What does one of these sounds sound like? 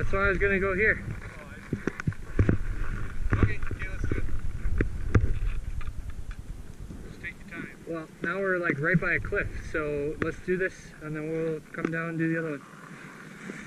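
A young man talks nearby outdoors.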